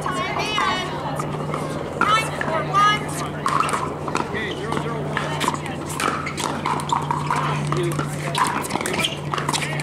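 Paddles smack a plastic ball back and forth with sharp hollow pops.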